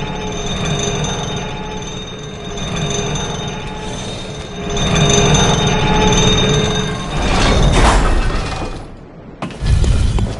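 A metal lift cage rumbles and clanks as it descends.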